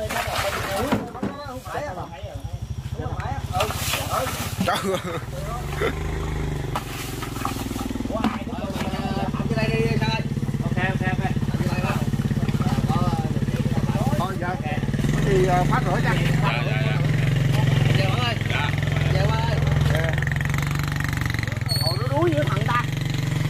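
Men talk with animation nearby.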